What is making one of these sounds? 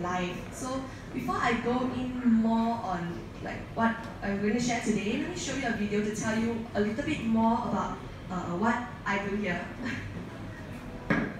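A young woman speaks calmly into a microphone, heard through loudspeakers in a room with some echo.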